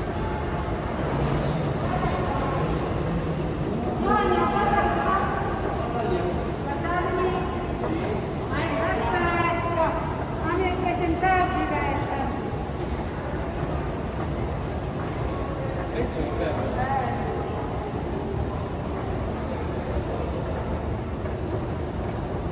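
An escalator rumbles steadily.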